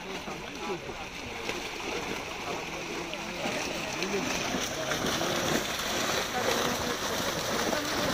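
Water splashes as a net is dragged through it.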